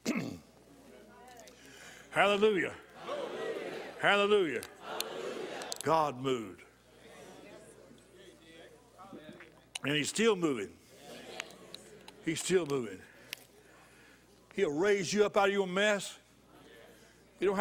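An older man speaks with emphasis through a microphone, with pauses, in a large echoing hall.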